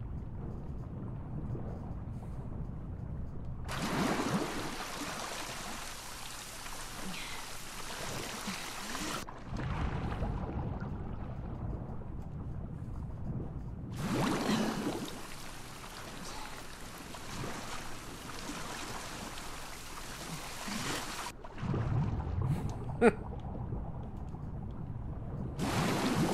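A low, muffled rumble sounds under water.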